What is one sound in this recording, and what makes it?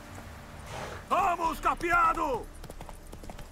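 A young man speaks loudly and animatedly into a close microphone.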